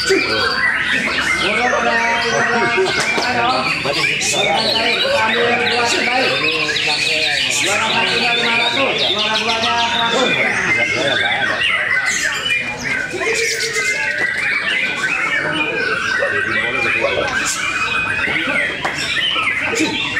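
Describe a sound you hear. Many caged songbirds sing and chirp loudly all at once.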